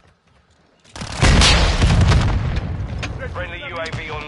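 Rapid gunshots crack loudly.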